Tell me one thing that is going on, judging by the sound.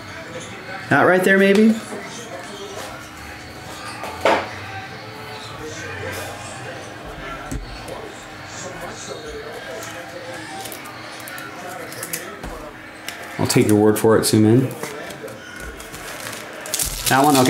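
Card wrappers crinkle as they are handled.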